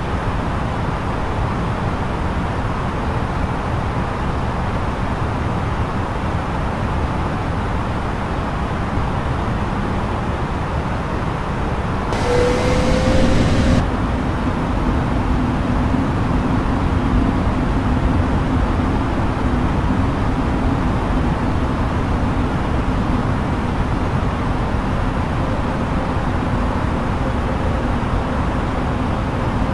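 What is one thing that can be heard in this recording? Jet engines roar steadily, heard from inside a cockpit.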